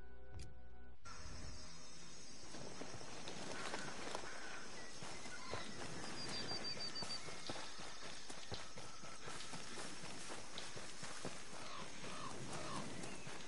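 Footsteps rustle through dense leafy plants.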